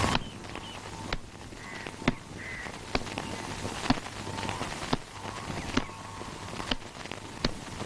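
Footsteps knock on a wooden ladder.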